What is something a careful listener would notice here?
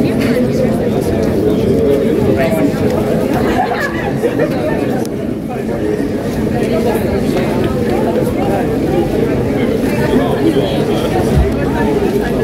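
A choir of young men and women sings together through loudspeakers outdoors.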